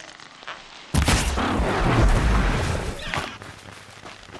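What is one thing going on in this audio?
A loud blast bursts and rumbles away.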